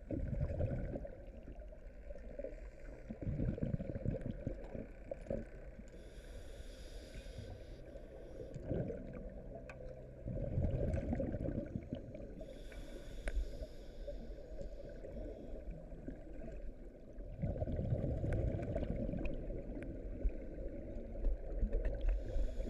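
Bubbles rush and fizz underwater.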